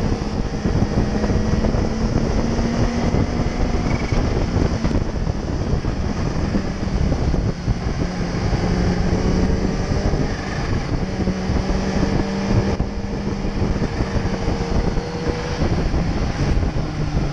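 A motorcycle engine hums steadily up close, its pitch rising and falling with the throttle.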